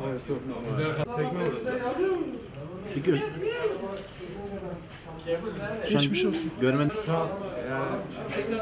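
A man speaks close to a microphone in a strained, earnest voice.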